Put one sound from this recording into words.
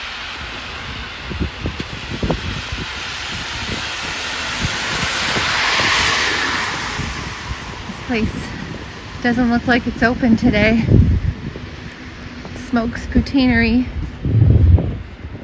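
Footsteps crunch on packed snow.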